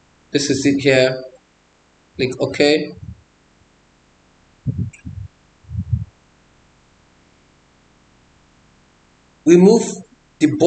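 A man speaks calmly, close to a microphone, in short phrases.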